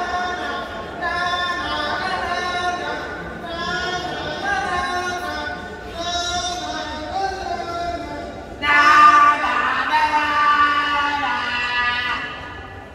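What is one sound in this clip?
A man sings through loudspeakers in a large echoing hall.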